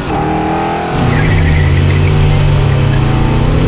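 A car engine roars as the car speeds past.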